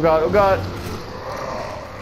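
A shotgun is pumped with a metallic click.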